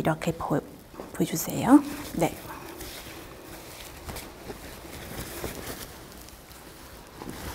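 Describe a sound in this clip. Fabric rustles softly.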